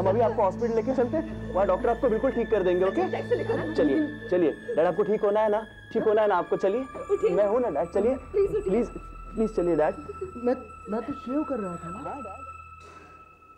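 A woman speaks anxiously close by.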